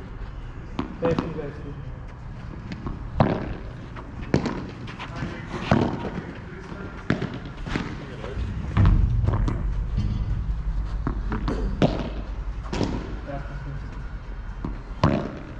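Padel rackets strike a ball with sharp pops, back and forth.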